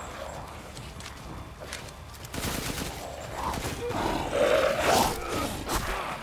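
A beastly creature snarls and roars.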